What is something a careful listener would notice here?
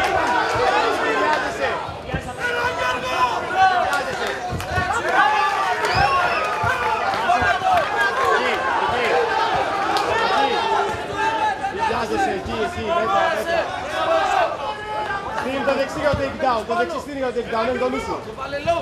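A crowd of spectators shouts and cheers throughout.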